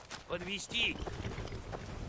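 A horse's hooves clop on the ground.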